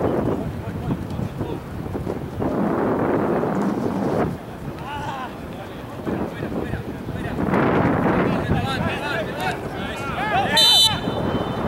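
Young men shout to each other across an open field outdoors.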